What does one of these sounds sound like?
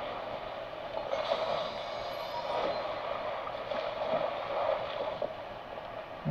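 Water splashes as a game character swims.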